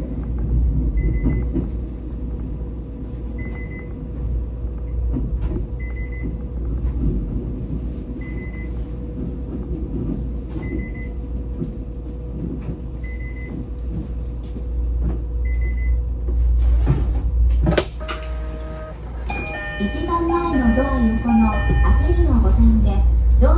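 A train rumbles heavily along the rails and slowly slows down.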